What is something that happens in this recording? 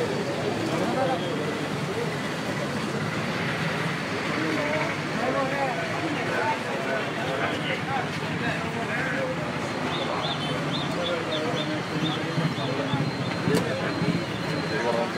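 A crowd of men and women talks over one another close by.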